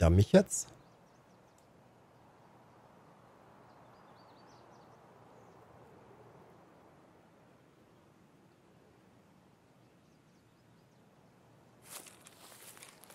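Footsteps rustle steadily through tall grass and bushes.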